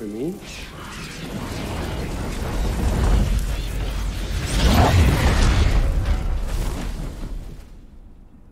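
A flock of birds flaps its wings in a noisy rush.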